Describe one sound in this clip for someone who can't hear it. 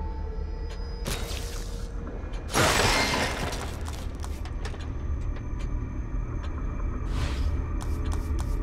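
A game menu plays a whooshing upgrade sound effect.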